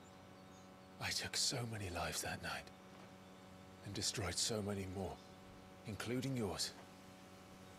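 A young man speaks quietly and sombrely, close by.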